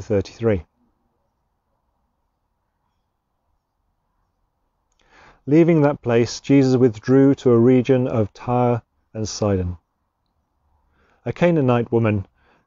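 A man reads aloud calmly, close by.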